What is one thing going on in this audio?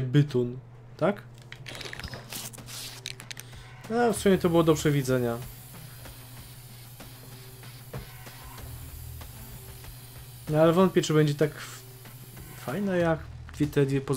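A spray can hisses as paint sprays out.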